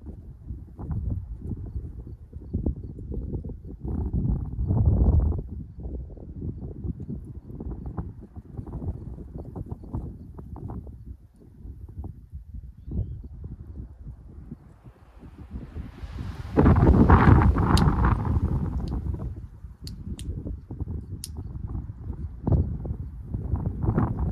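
Wind gusts across open ground outdoors and rumbles against the microphone.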